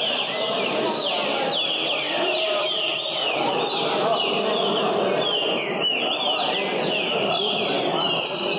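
Many caged songbirds sing and chirp loudly and continuously in an echoing hall.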